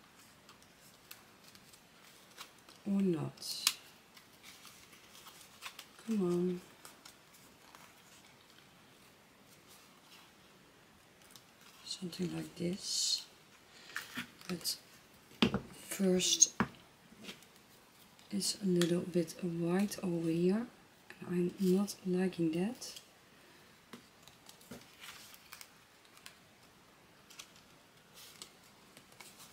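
Paper rustles and slides as it is handled.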